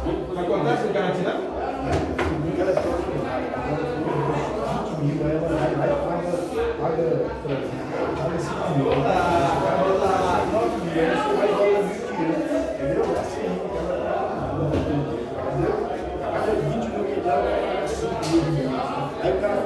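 Several men talk with animation nearby.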